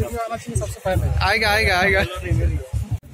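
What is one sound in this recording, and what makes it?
A woman laughs cheerfully nearby.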